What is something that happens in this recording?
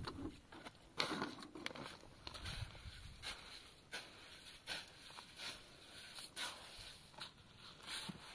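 A shovel scrapes and scoops through wet mortar on the ground.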